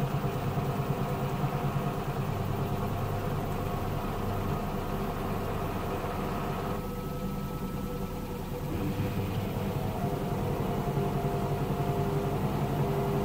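Water and wet laundry slosh inside a washing machine drum.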